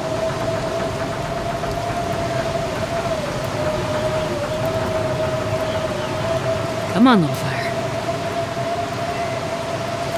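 A cold wind blows steadily outdoors.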